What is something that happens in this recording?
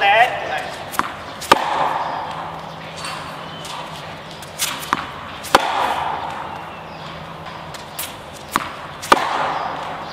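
A tennis ball is struck hard with a racket, echoing in a large hall.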